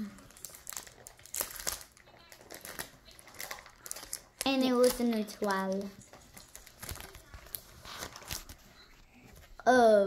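A foil card wrapper crinkles as it is torn open.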